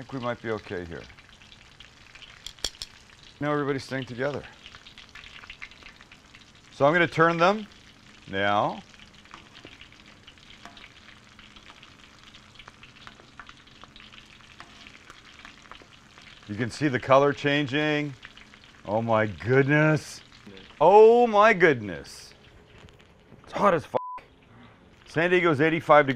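Oil sizzles and bubbles steadily in a pan.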